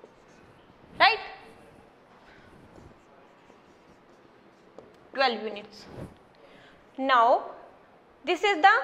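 A young woman speaks clearly, as if explaining.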